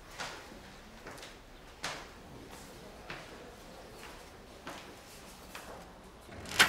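Footsteps thud slowly on stairs.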